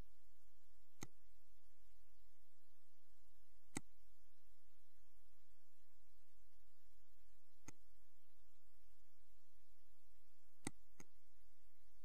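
A computer mouse clicks sharply a few times.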